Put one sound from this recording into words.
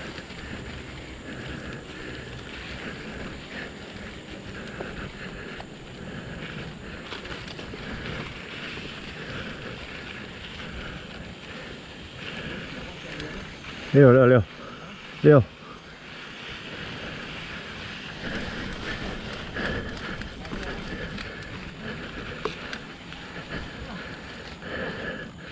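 A bicycle rattles over bumps on the trail.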